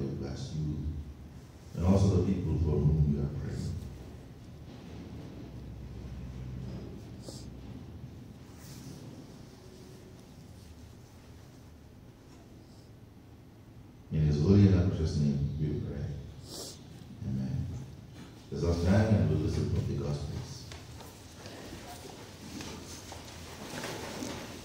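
A man speaks through a microphone and loudspeakers in an echoing hall, in bursts with pauses.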